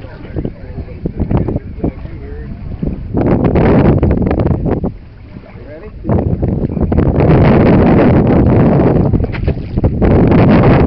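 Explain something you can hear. Water laps and splashes gently against a boat.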